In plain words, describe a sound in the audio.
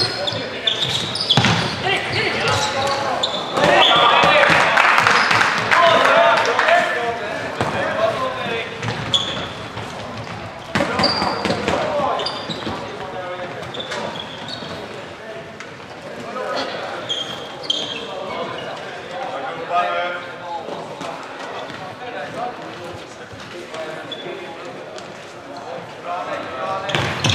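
Sticks and a ball knock and clatter on the floor.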